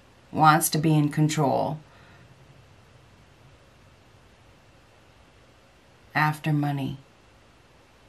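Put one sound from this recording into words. A middle-aged woman speaks calmly and close to a microphone, in short phrases with pauses.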